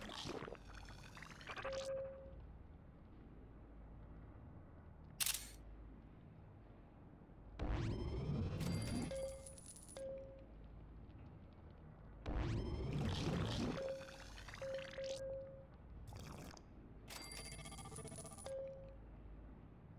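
Short electronic game chimes and zaps ring out in bursts.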